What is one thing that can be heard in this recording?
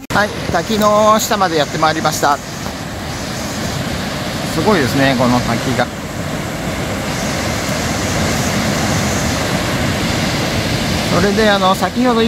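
A waterfall roars steadily, with water rushing over rocks.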